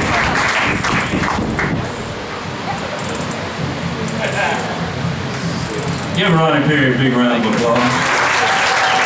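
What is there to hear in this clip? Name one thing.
An audience applauds and cheers in a large room.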